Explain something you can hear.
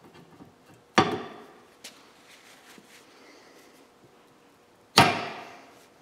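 Metal parts clank sharply as they are fitted together.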